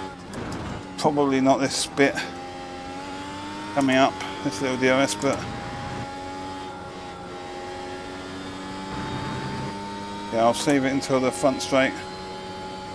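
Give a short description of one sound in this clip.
A racing car engine blips and snarls sharply during downshifts.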